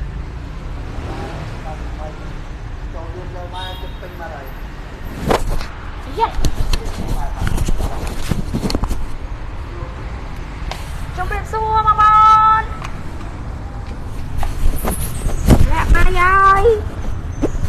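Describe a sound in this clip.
A woman speaks nearby in short bursts.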